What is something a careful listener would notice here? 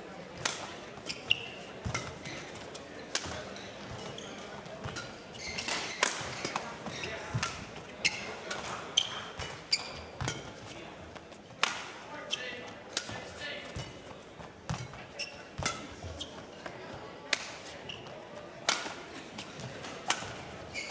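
Shoes squeak and thud on the court floor.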